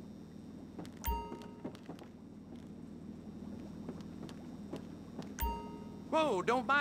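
A short electronic chime rings twice.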